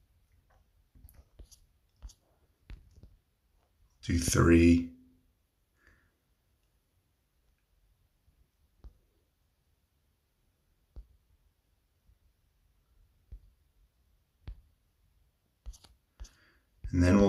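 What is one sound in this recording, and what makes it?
Soft menu buttons click now and then.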